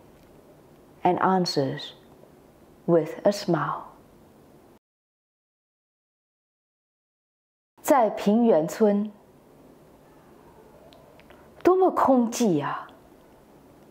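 A woman speaks calmly into a close microphone, reading aloud in short phrases.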